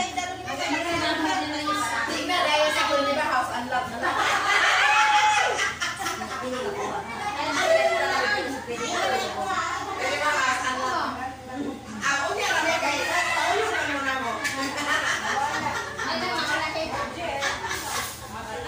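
Several women and children chatter nearby.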